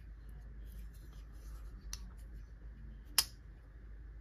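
A folding knife blade snaps shut with a sharp click.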